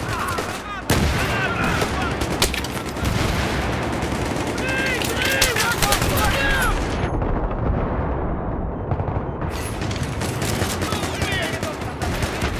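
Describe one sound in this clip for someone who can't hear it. Bullets ricochet with whining sounds.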